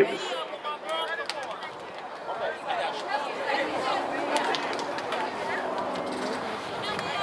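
Many young people chatter and shout nearby outdoors.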